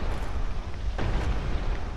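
Armor clanks as a figure rolls across a stone floor.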